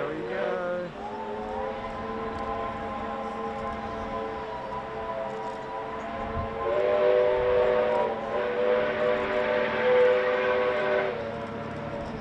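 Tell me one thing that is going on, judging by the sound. A steam locomotive's whistle blows long and loud.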